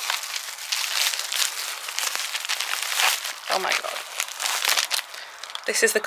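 Plastic bubble wrap crinkles and rustles close by.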